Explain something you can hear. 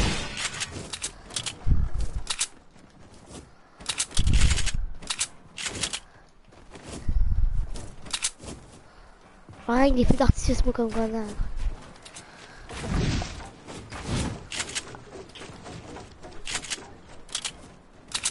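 Footsteps clatter quickly across a hollow metal roof.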